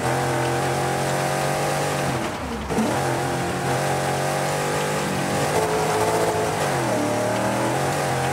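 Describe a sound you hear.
Tyres crunch and skid over loose gravel.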